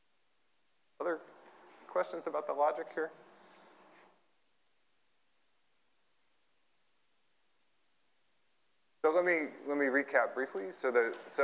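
A man lectures through a microphone in a large echoing hall, speaking calmly.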